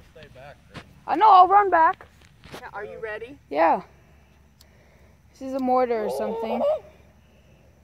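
A young woman speaks and laughs close by.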